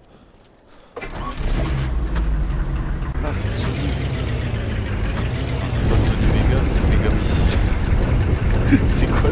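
A vehicle engine starts up and rumbles steadily as it drives.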